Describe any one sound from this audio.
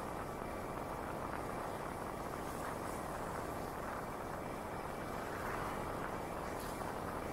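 Wind rushes steadily past a moving bicycle.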